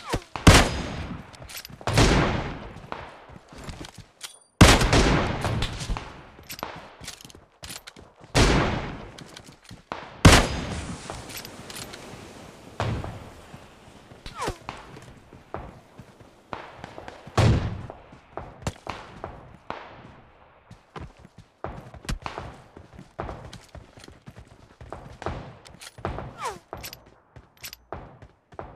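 Footsteps crunch steadily on ground.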